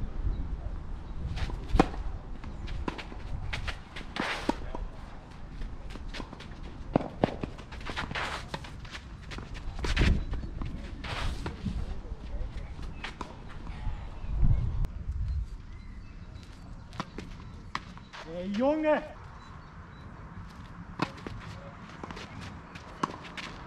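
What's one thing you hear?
Tennis balls are struck with rackets, with sharp pops outdoors.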